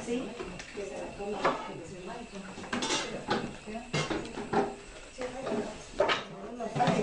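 Several women talk with each other nearby.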